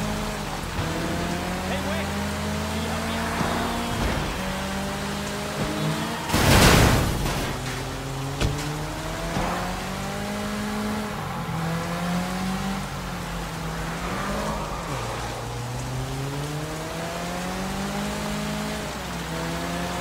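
A car engine revs hard and shifts gears as it speeds along.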